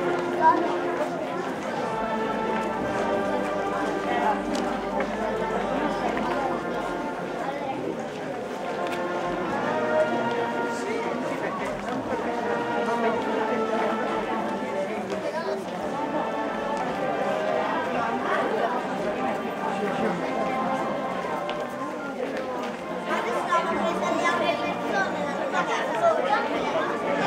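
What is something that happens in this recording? A crowd of men and women sing together outdoors.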